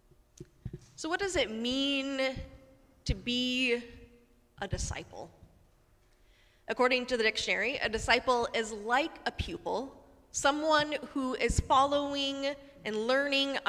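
A woman sings loudly in a large echoing hall.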